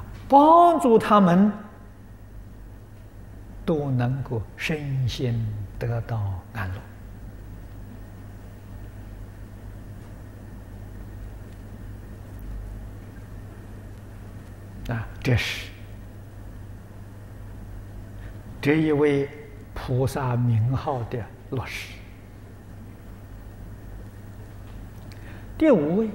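An elderly man speaks calmly into a microphone, pausing often.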